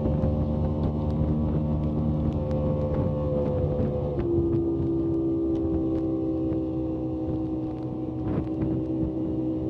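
A boat's outboard motor drones steadily, shifting pitch partway through.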